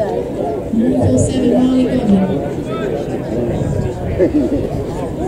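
A crowd of people chatter and call out nearby outdoors.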